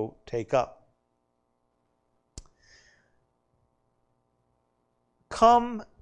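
A man speaks into a microphone in short bursts, with pauses.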